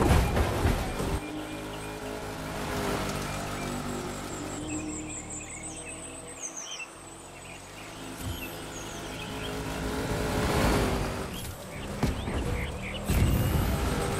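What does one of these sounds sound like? A rally car engine revs and hums steadily, shifting pitch as the car speeds up.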